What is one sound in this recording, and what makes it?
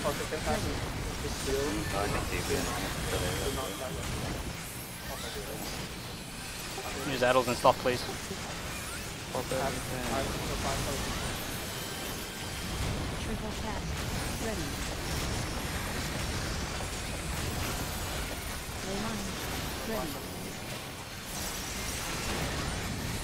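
Magic blasts and battle effects whoosh and crackle.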